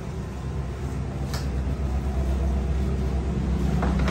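A broom sweeps across a hard floor.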